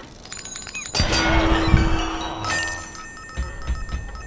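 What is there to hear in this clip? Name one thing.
A bright chiming reward jingle rings out.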